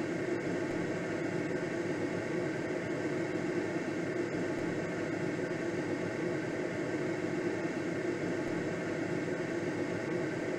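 Wind rushes steadily over a glider's canopy.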